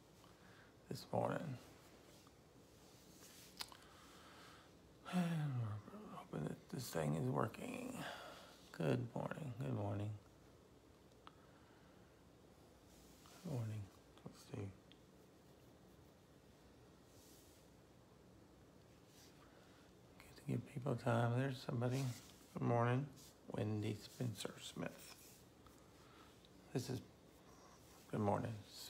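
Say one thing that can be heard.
A middle-aged man speaks calmly and close to the microphone, in short bursts with pauses.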